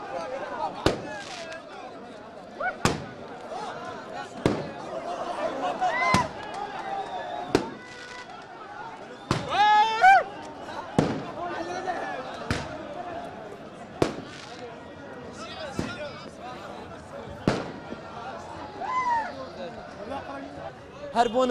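A crowd of young men shouts and cheers nearby.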